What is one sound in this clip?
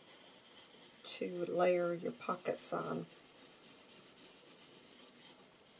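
A sponge dabs softly on paper.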